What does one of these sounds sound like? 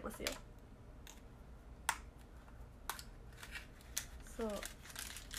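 A plastic object clicks and taps in a young woman's hands.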